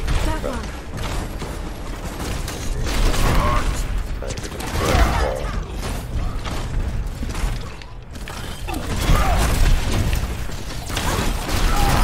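A weapon fires rapid, crackling energy blasts.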